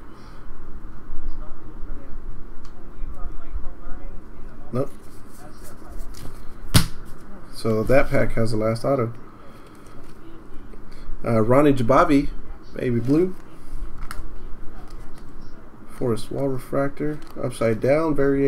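Cards slide and shuffle against each other.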